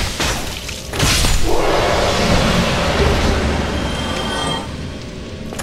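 A shimmering magical burst flares up and fades.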